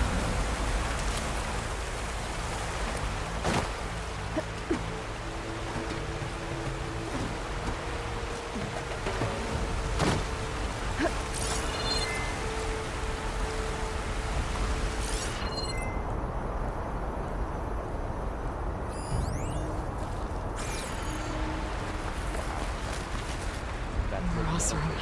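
Water rushes and splashes steadily nearby.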